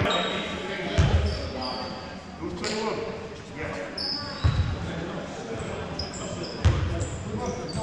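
A basketball bounces with dull, echoing thuds.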